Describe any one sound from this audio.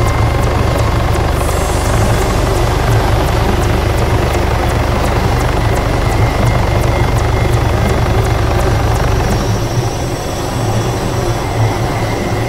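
A helicopter's rotor thumps loudly and steadily as it flies low.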